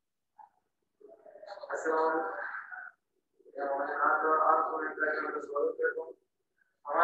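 A young man speaks clearly and loudly close by.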